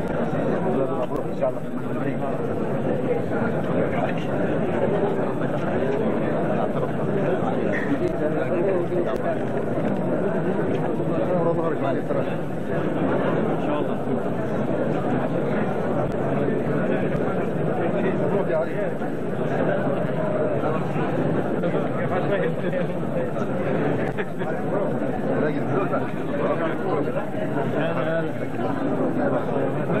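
A crowd of men chatter and greet each other close by, with many voices overlapping.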